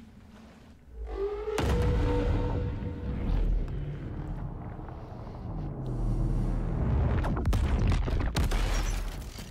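A deep whooshing rumble roars and swells.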